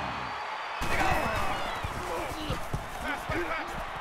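Football players thud together in a tackle.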